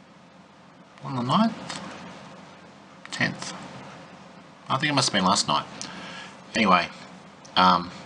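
A middle-aged man speaks slowly and thoughtfully, close to a microphone, with pauses.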